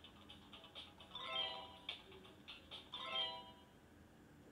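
A handheld game console plays short electronic chimes.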